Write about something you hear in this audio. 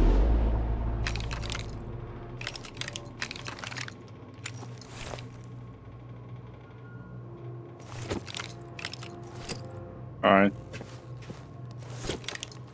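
Metal gun parts click and clack.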